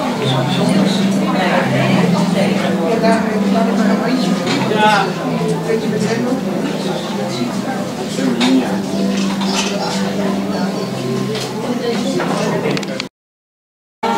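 Men and women chat in a low, busy murmur around the listener.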